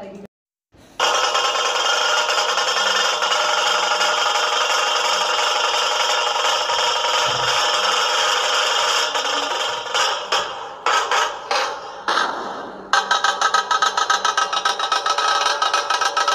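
Loud festive music plays through a loudspeaker outdoors.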